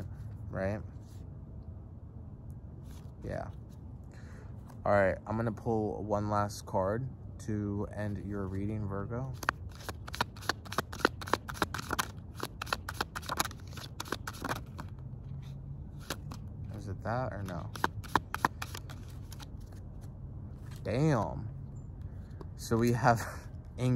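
A man speaks calmly and softly, close by.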